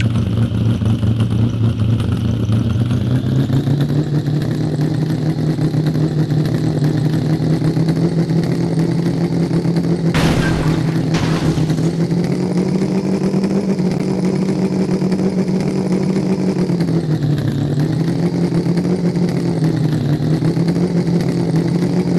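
An engine drones steadily, rising and falling in pitch as a truck climbs rough ground.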